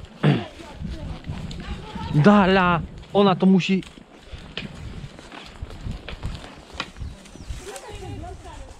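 Horses' hooves thud steadily on a dirt path.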